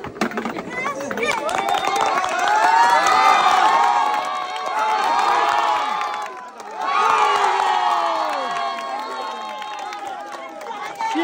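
A crowd of women chatters and cheers outdoors.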